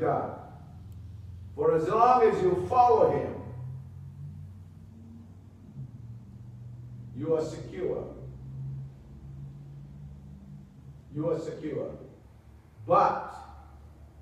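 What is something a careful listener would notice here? A man speaks slowly and solemnly through a microphone, with long pauses.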